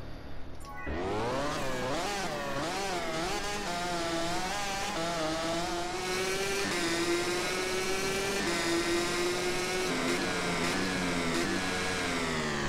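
A motorcycle engine drones at high revs, its pitch rising and falling.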